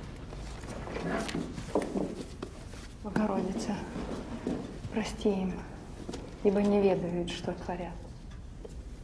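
A young woman talks quietly close by.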